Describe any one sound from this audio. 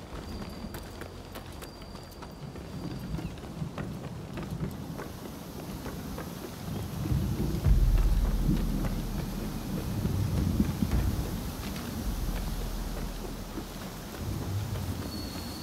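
Footsteps run quickly over wooden planks.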